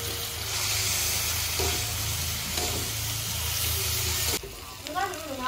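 A metal spatula scrapes against a pan.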